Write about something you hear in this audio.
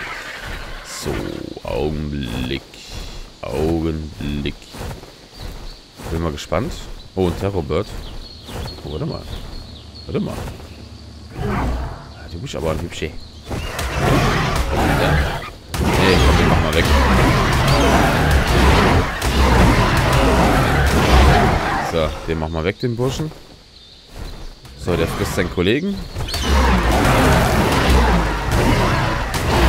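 Large wings flap with heavy whooshing beats.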